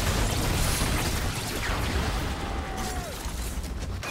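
A structure explodes with a loud crash.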